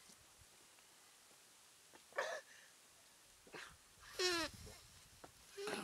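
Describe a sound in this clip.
A young man gulps down a drink.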